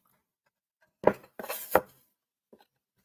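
A wooden board knocks and scrapes as it slides across a table.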